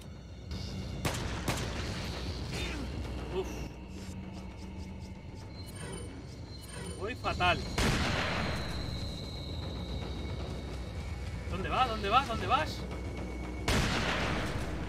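Gunshots bang out sharply.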